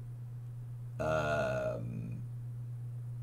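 A man says a few words briefly, close to a microphone.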